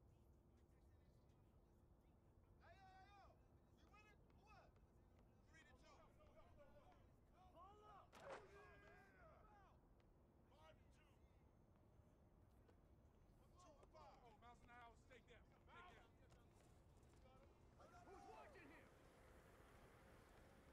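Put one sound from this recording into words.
A basketball bounces on a hard court.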